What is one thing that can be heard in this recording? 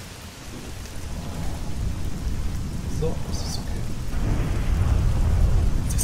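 Wind rumbles steadily outdoors and slowly grows louder.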